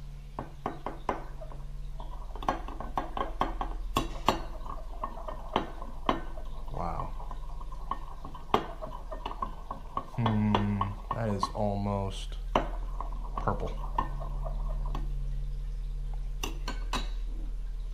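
A metal spoon clinks and taps against a glass cup while stirring.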